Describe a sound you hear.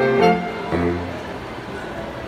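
A saxophone group plays a final chord, which rings out and stops.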